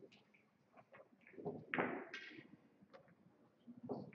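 Pool balls click sharply against each other on a table.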